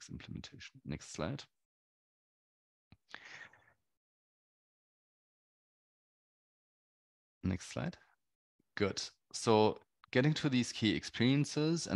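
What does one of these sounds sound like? A man speaks calmly through a computer microphone, pausing between phrases.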